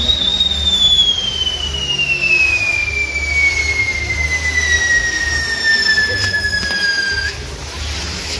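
A spinning firework wheel whistles, its pitch slowly falling.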